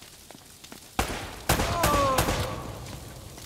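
Gunshots crack sharply, echoing off stone walls.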